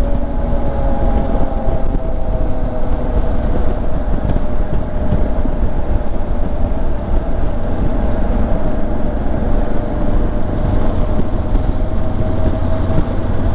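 A motorcycle engine hums steadily as the bike rides along.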